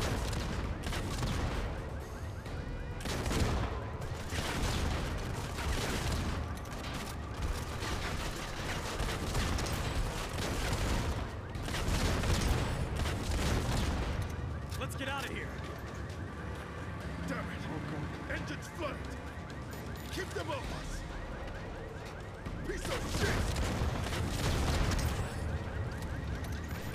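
Gunfire and explosions boom and crackle loudly.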